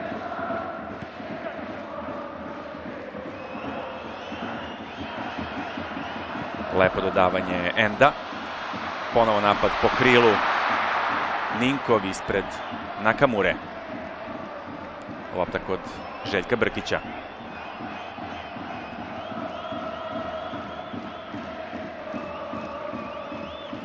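A large stadium crowd murmurs and chants steadily.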